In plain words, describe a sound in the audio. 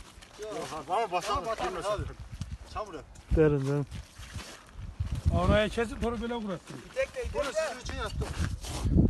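Men talk and call out to each other outdoors.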